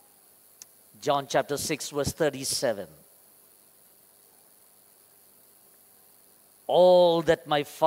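A man speaks slowly and calmly through a microphone, with long pauses.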